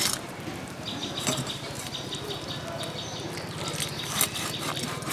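Fish scales scrape and crackle under fingers.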